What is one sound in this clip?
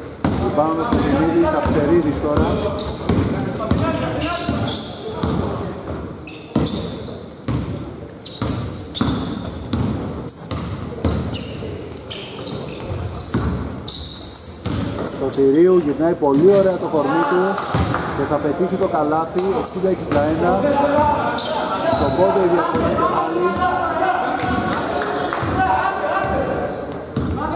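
A basketball bounces with hollow thuds in a large echoing hall.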